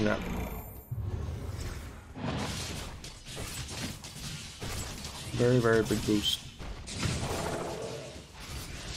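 Fighters clash in a battle game, with blows and magic effects.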